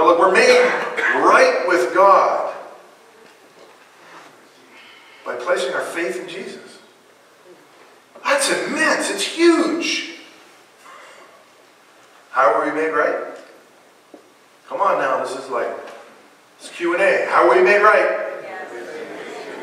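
A man speaks with animation through a microphone in a room with some echo, pausing between phrases.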